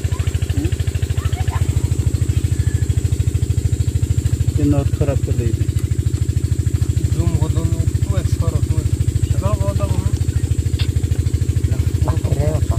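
A diesel engine idles with a fast, steady chugging knock.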